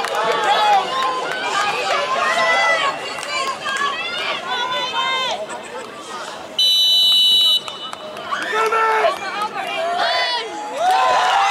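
Spectators shout and call out close by, outdoors.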